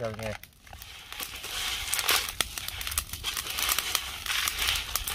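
Charcoal crackles and sizzles under fish on a grill.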